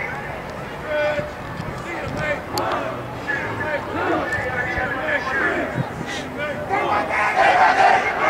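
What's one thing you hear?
A man speaks loudly to a group of young players outdoors.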